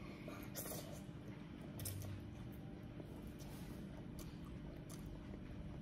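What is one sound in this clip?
A young girl slurps noodles close by.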